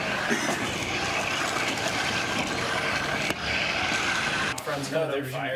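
A toy car's electric motor whirs as it drives over pavement.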